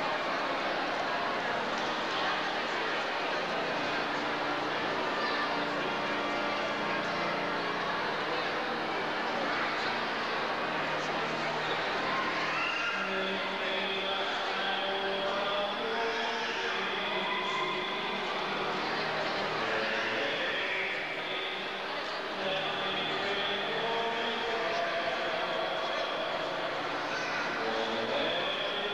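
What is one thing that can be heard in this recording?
A congregation sings slowly in a large echoing hall.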